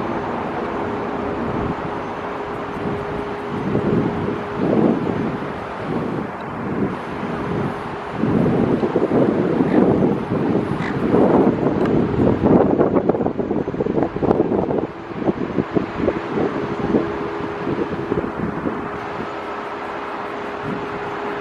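A jet airliner's engines roar steadily as it taxis nearby.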